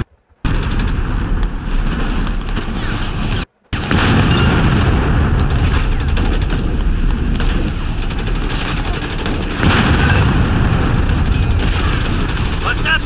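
Gunfire crackles and explosions rumble in a battle.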